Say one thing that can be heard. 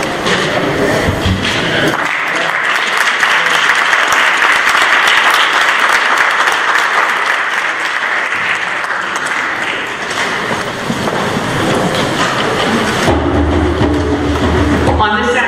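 A woman speaks steadily into a microphone, heard over loudspeakers in a large echoing hall.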